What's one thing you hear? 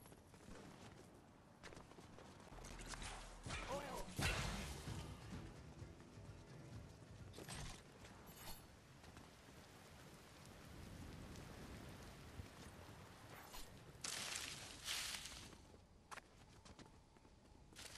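Footsteps patter quickly over stone.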